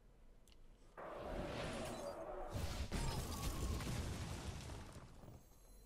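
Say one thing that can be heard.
Game sound effects whoosh and crackle with a magical burst.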